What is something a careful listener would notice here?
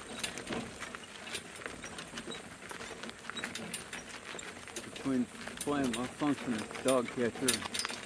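Cart wheels crunch over gravel.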